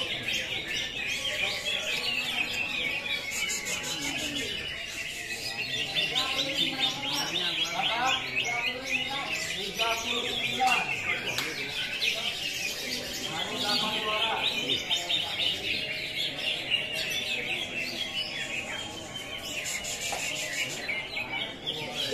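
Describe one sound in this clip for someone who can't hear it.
Many caged songbirds chirp and trill loudly and busily, echoing under a large roof.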